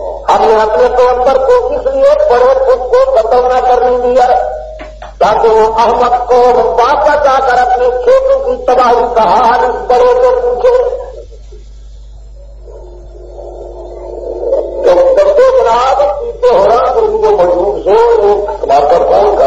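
A middle-aged man speaks in a steady, chanting voice close to a microphone.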